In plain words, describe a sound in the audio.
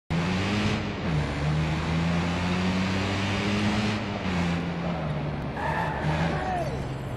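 A car engine hums and revs steadily while driving.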